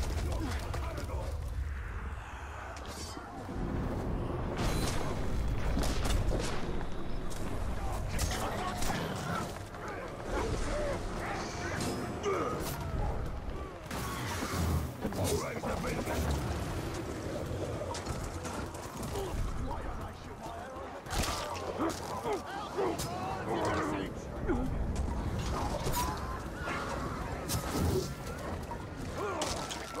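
Swords clash and slash in quick, sharp strikes.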